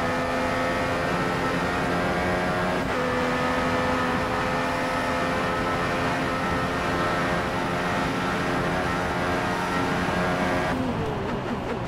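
A racing car engine screams steadily at high revs.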